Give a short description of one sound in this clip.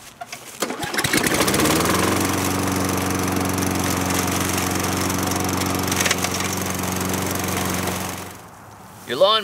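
A lawn mower engine starts up and runs with a steady drone.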